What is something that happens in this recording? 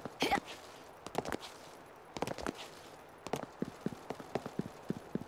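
Footsteps run quickly over a hard floor.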